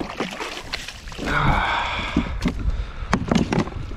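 Water splashes as a landing net scoops through it.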